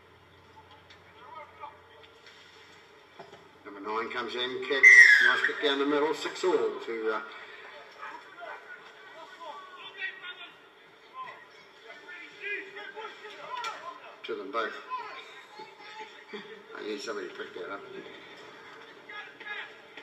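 Players and spectators shout and call out across an open field outdoors.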